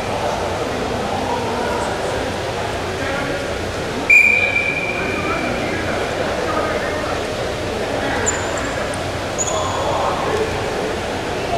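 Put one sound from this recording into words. A large indoor crowd murmurs and chatters in an echoing hall.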